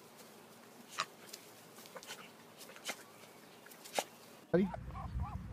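Dogs scuffle and tumble on grass.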